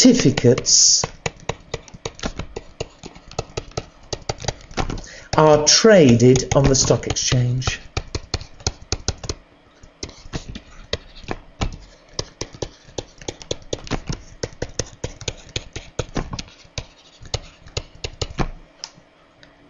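A pen taps and scratches rapidly while writing.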